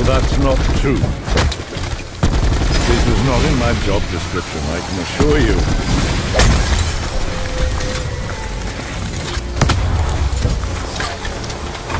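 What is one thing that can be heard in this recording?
A rapid-fire weapon shoots in quick bursts.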